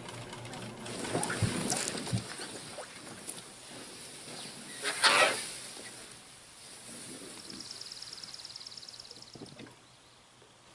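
A metal boat scrapes as it is dragged over dry grass.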